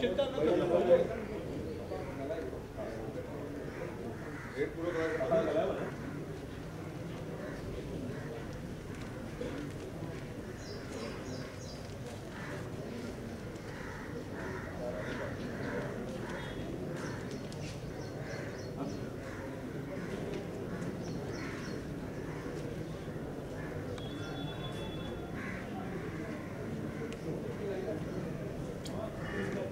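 A crowd of people murmurs quietly outdoors.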